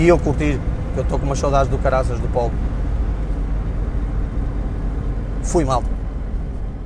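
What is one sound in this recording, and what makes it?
A man speaks calmly through a clip-on microphone, close by.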